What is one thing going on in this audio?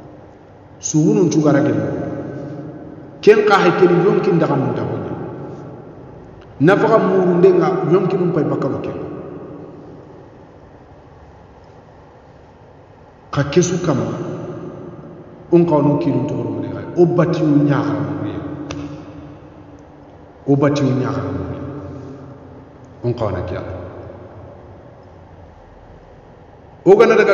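A man speaks calmly into a close microphone in short phrases with pauses.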